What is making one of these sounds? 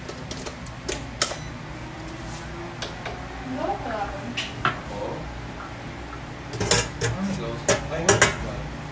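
Utensils clink and knock on a hard surface.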